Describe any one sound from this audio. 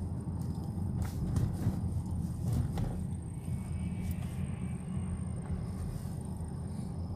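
A bus passes close by.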